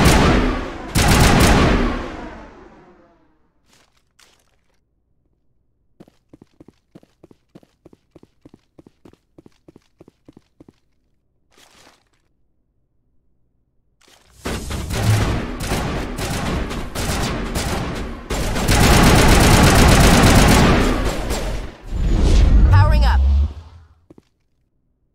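A rifle fires rapid bursts of energy shots.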